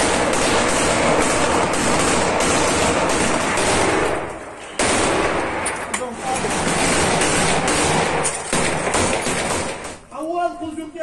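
Rifles fire in rapid bursts close by.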